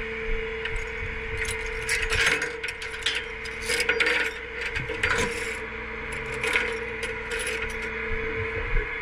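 Metal straps and chains clank against a steel truck bed.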